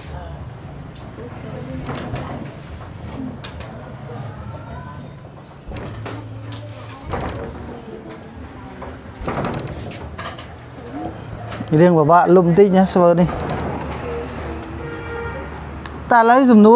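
A cloth rubs and squeaks across a whiteboard.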